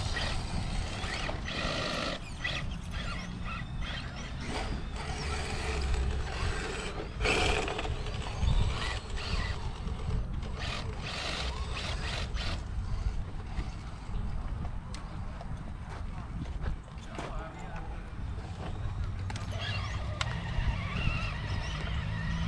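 A small electric motor whines as a toy truck crawls over rocks.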